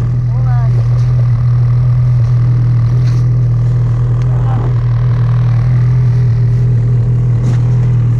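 A snowmobile engine idles steadily close by.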